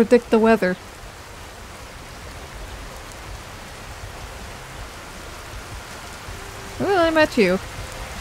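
Rain patters steadily on grass.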